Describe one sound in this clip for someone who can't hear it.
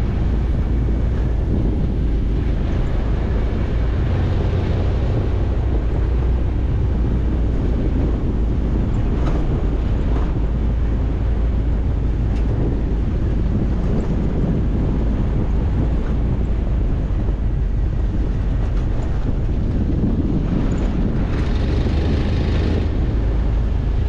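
Tyres crunch and rumble over a rough dirt road.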